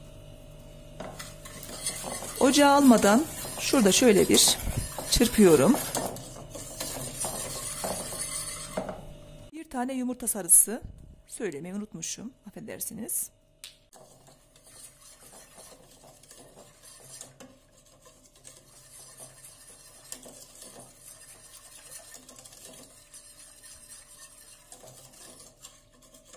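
A wire whisk scrapes and clinks against a metal pot.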